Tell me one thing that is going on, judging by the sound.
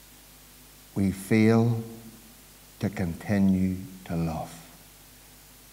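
A middle-aged man speaks slowly and firmly into a microphone, with long pauses.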